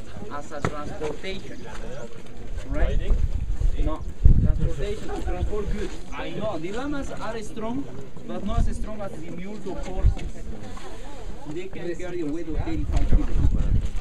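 Several men and women talk close by at the same time, in a crowd outdoors.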